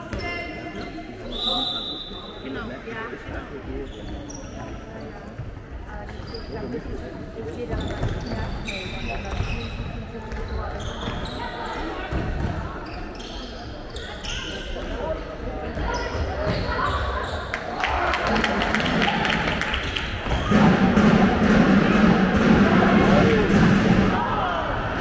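Sneakers squeak sharply on a wooden hall floor.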